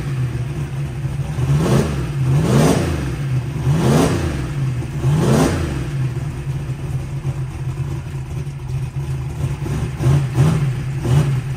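A big engine idles with a deep, loud, lopsided rumble.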